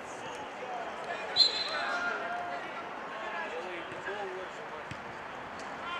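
Players shout to each other across an outdoor field.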